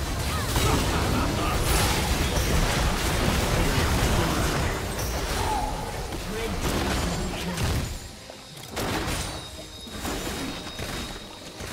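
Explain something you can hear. Game spell blasts and impacts crash and crackle in a busy fight.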